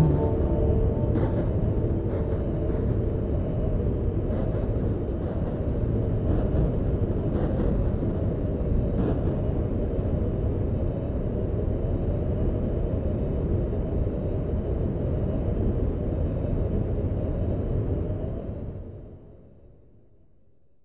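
A tornado's wind roars in a low, steady rumble, then fades away.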